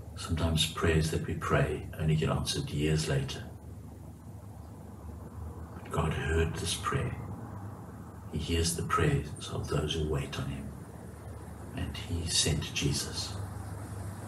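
A middle-aged man speaks calmly and in short bursts, close to a microphone.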